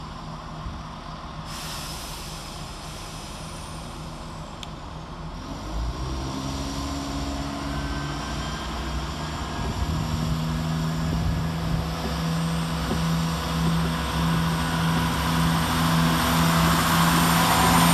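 A diesel train engine hums and grows louder as the train approaches.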